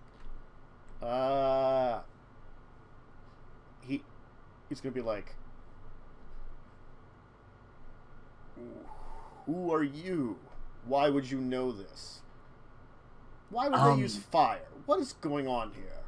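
A man talks with animation over an online call.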